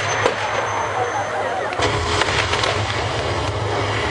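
Fireworks crackle and hiss as sparks shower down.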